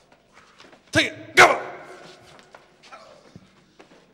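A man drops heavily onto the floor.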